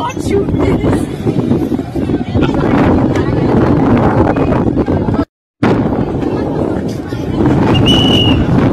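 A crowd chatters loudly outdoors.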